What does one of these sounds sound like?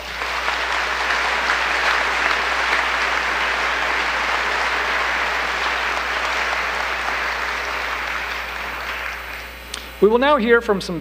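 Applause from many hands fills a large hall and slowly fades.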